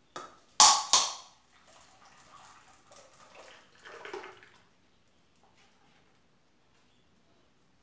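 A thick liquid pours into a metal pan.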